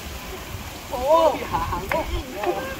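Men shout and cheer excitedly outdoors.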